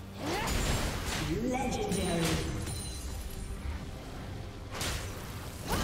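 Magic spells whoosh and burst in a fight.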